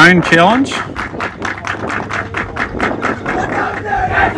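Hands clap quickly in a burst.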